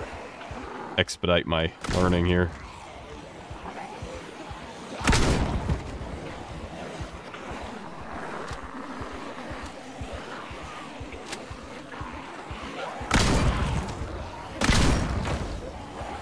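Gunshots ring out in loud, sudden bursts.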